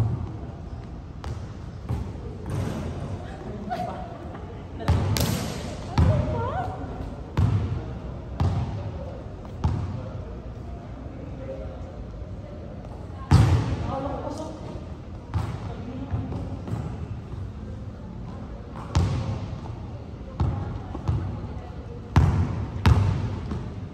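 A basketball bounces on a wooden floor, echoing around a large hall.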